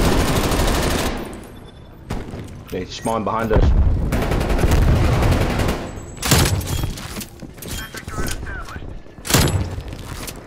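Gunshots crack sharply.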